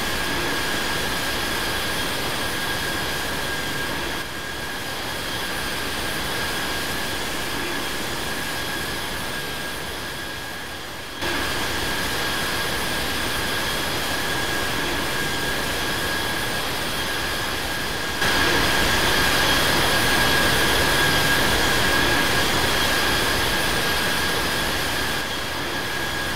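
A jet airliner's engines roar and whine steadily.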